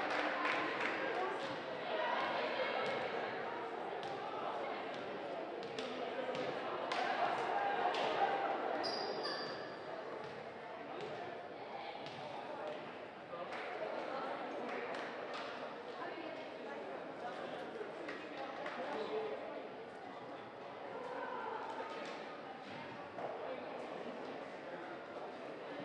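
Sneakers squeak on a wooden court.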